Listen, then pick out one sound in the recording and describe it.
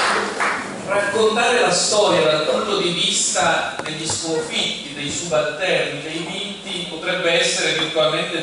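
A young man speaks calmly into a microphone over loudspeakers.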